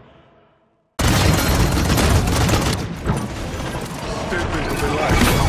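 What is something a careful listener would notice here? Guns fire in rapid bursts amid loud battle noise.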